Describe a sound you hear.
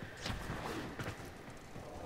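A sword swings through the air with a whoosh.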